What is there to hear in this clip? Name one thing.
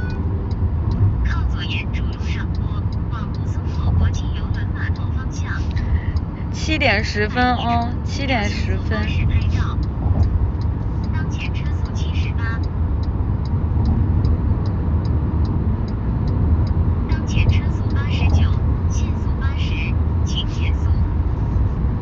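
A young woman talks softly and close by.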